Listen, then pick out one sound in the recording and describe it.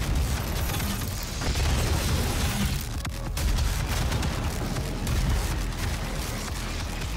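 A heavy gun fires in rapid bursts with loud booming blasts.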